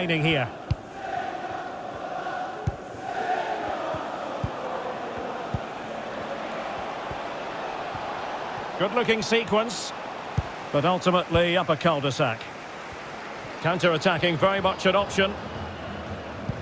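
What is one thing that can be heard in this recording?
A stadium crowd murmurs and cheers steadily in the background.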